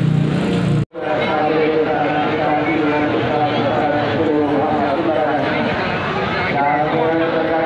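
A large crowd of men and women chants loudly outdoors.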